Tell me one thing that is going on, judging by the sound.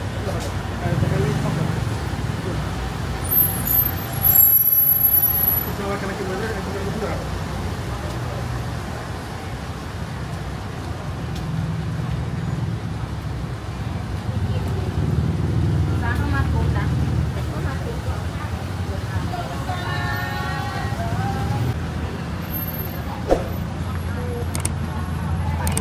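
Traffic hums steadily along a busy street outdoors.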